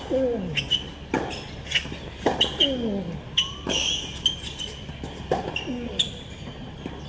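Tennis balls are struck with sharp pops in a rally.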